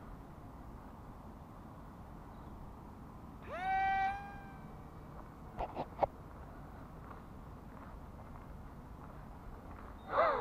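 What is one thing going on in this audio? Wind rumbles steadily against the microphone outdoors.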